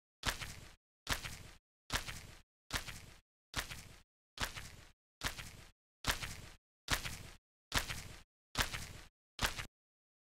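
Heavy footsteps thud slowly and evenly.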